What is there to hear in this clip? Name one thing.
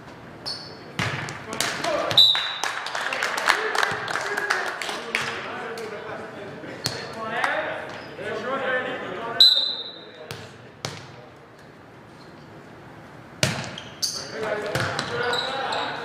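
Young players shout and call out to each other.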